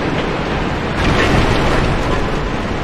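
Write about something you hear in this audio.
Wooden crates and barrels smash and splinter.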